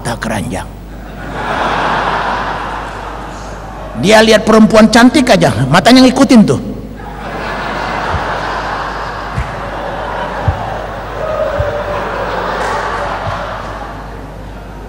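An audience laughs together.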